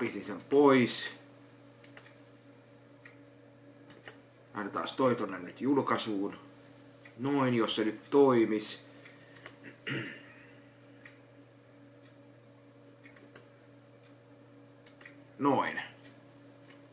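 A man speaks calmly and thoughtfully, close to a microphone, in short bursts with long pauses.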